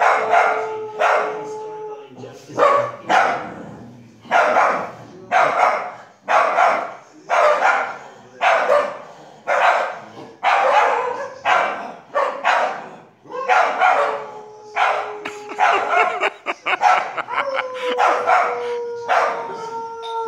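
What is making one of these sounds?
A small dog barks sharply again and again, close by.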